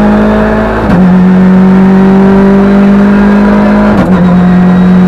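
A car engine's pitch drops sharply with each gear change.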